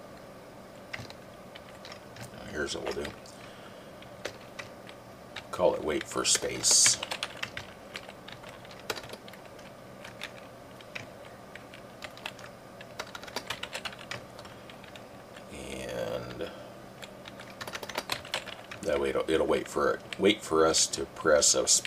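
Keyboard keys click and tap in quick bursts.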